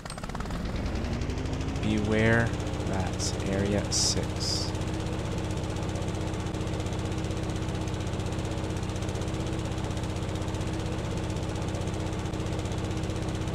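A mower engine hums steadily.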